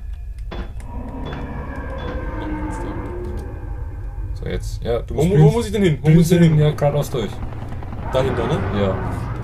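Two young men talk with animation close to a microphone.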